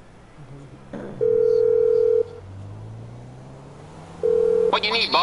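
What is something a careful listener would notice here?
A phone ringtone beeps loudly.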